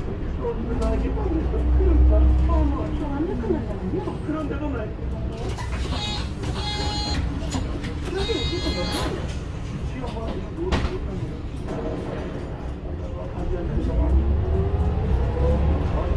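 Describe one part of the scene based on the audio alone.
A bus engine rumbles and whines as the bus drives along.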